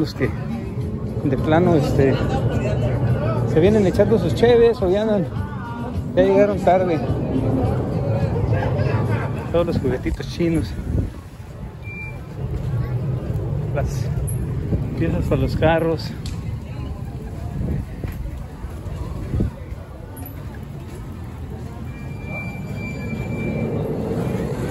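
A crowd of people murmurs in the distance outdoors.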